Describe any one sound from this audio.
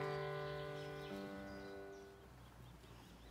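Keyboard chords ring out and fade away.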